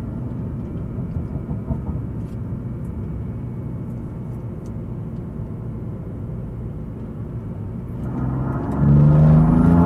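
A car engine hums at low speed.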